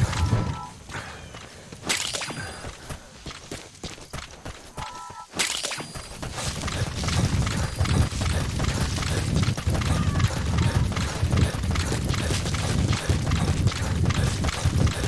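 Footsteps thud quickly on dirt and grass.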